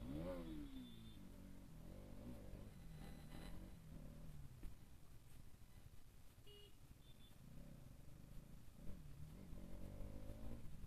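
Other motorcycles pass nearby.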